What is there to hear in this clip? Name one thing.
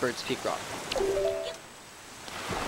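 A short chime rings out in two quick notes.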